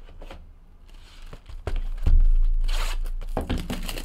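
Plastic wrap crinkles on a box.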